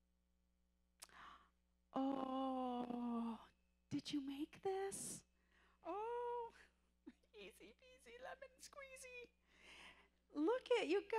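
A woman speaks with animation through a microphone in a large room.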